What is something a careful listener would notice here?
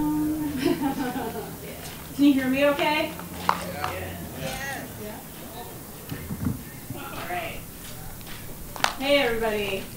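A young woman speaks into a microphone over a loudspeaker outdoors.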